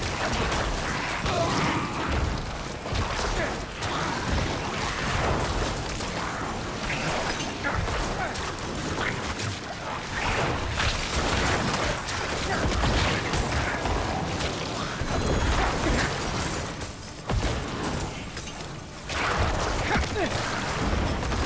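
Game combat crashes and blasts with clashing hits.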